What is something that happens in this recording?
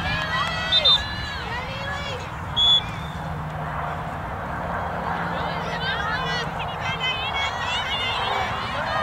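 A crowd of spectators cheers and chatters outdoors.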